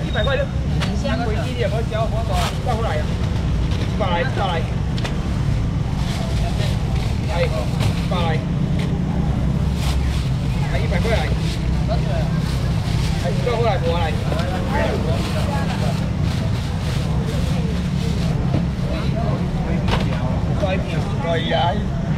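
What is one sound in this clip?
A crowd chatters.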